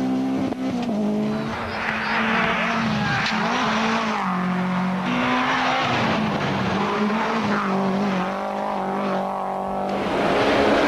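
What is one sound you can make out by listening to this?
A turbocharged four-cylinder rally car engine revs at full throttle.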